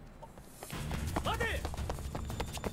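A man shouts a warning to stop.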